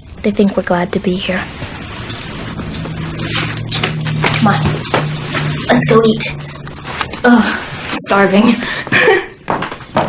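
A young woman speaks with strain.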